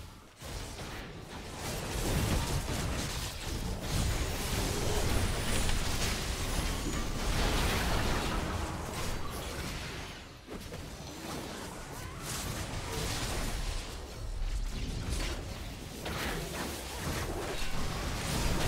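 Video game battle effects crackle and clash.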